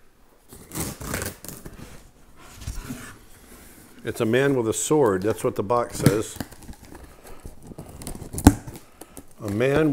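Packing tape rips off a cardboard box.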